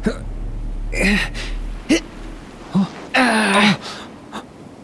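A young man grunts with effort.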